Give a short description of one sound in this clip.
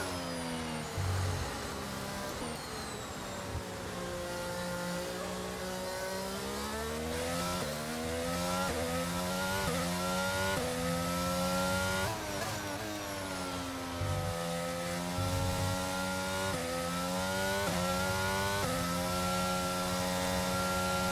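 Rain spray hisses under the car's tyres.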